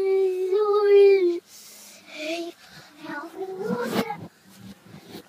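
A young woman sings and talks close by, with animation.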